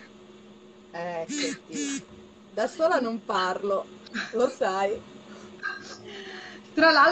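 A middle-aged woman talks and laughs with animation, heard through a phone.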